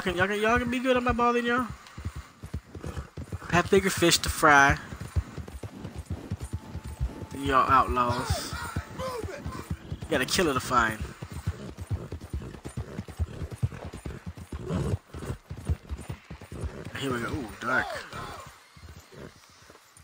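A horse gallops, its hooves thudding rapidly on soft ground.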